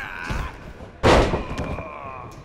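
A body slams down hard onto a wrestling mat with a loud thud.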